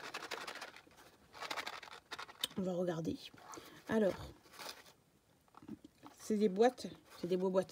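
A small cardboard box rustles and crinkles as hands handle it.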